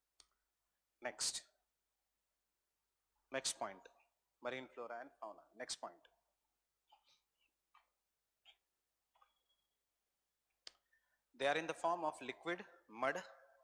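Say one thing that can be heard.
A man speaks calmly into a clip-on microphone, with pauses.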